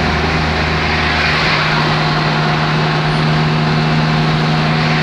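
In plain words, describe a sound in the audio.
A car drives at speed on a highway, with engine hum and road roar heard from inside the cabin.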